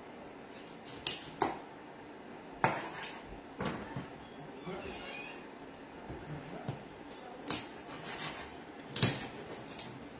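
A knife knocks on a wooden board.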